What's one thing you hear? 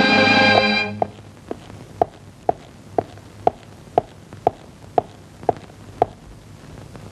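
Boots step firmly and evenly on a hard floor.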